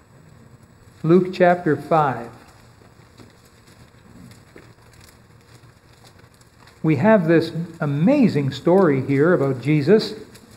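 A middle-aged man speaks calmly through a microphone in a large hall, pausing between phrases.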